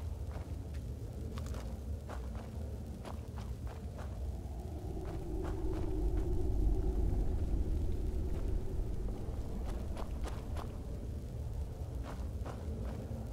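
A low magical hum drones steadily.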